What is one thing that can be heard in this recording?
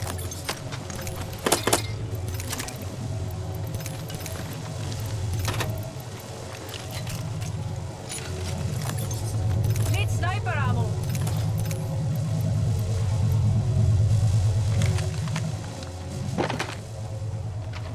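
Short item pickup clicks sound now and then.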